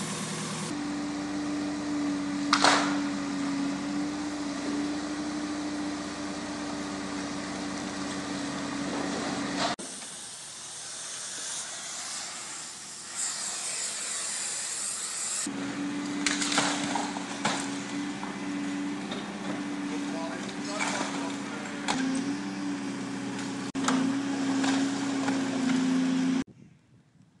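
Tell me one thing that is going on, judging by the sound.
A tracked hydraulic excavator's engine runs under load.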